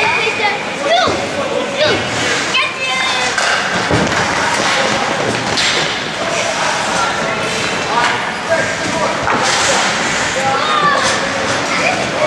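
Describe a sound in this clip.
Young players shout and call out to each other in a large echoing rink.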